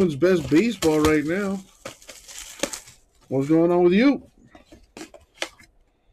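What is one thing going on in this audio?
Hands tear open a foil trading card pack.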